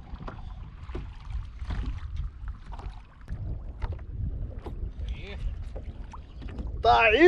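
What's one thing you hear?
A fishing reel clicks.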